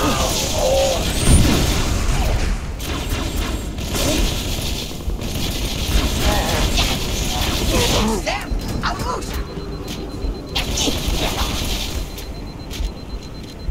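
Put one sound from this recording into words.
A heavy melee blow lands with a thud.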